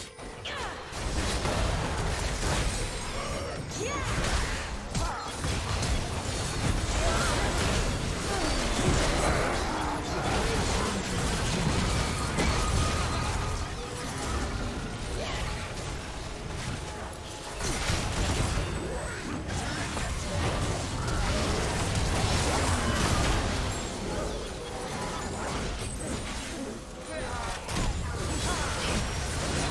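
Spell blasts and weapon hits from a video game battle crackle and boom.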